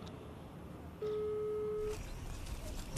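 A phone's ringing tone sounds through an earpiece.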